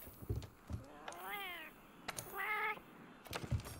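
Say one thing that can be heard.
A small cat-like creature meows twice.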